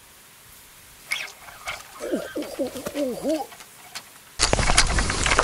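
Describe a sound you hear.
Water splashes and bubbles softly close by.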